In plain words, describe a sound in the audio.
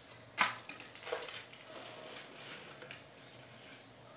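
A plastic cup is lifted off loose soil with a soft scrape.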